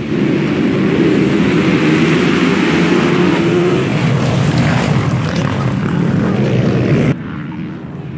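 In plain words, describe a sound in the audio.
A pack of motocross bikes roars loudly off the start line outdoors.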